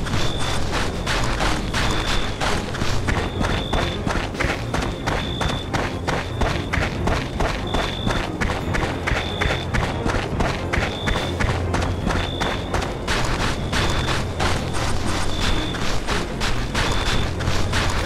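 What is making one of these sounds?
Boots crunch steadily on snowy ground in a quick walking rhythm.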